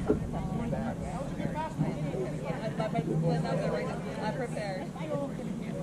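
Young men call out to each other across an open outdoor field.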